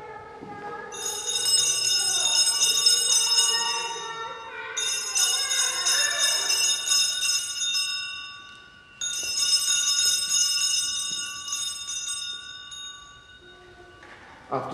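Small hand bells ring out in bright bursts in an echoing hall.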